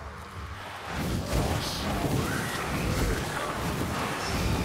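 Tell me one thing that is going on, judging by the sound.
Fiery blasts crackle and boom nearby.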